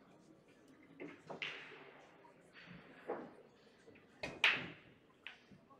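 Pool balls clack together sharply in a room with a slight echo.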